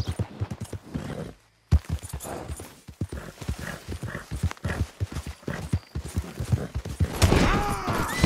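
Horse hooves thud rapidly on soft ground.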